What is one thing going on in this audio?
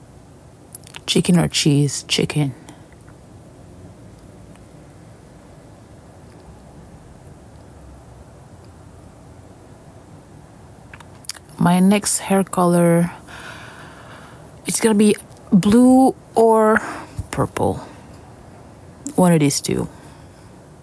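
A young woman talks close to the microphone in short bursts.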